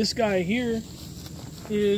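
Footsteps rustle through grass close by.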